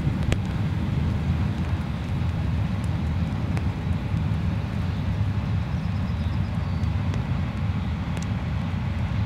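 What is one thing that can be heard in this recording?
Train wagons clatter and click over rail joints.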